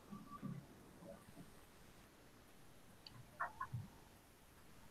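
A young woman speaks briefly and quietly through an online call.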